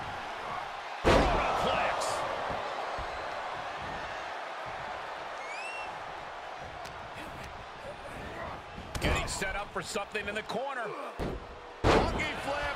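A body slams heavily onto a wrestling ring mat with a loud thud.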